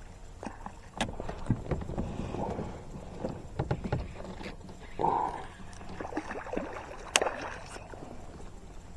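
A fish splashes and thrashes at the water's surface close by.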